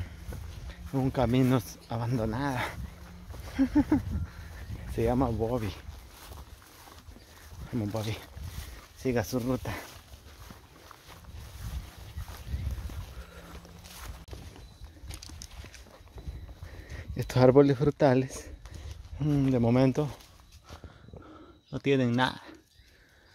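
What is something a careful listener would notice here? A man talks calmly and closely, in bursts.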